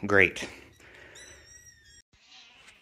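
A kitten meows in high, thin cries.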